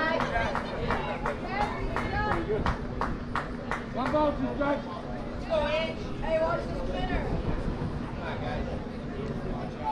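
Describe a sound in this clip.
Spectators call out and chatter outdoors at a distance.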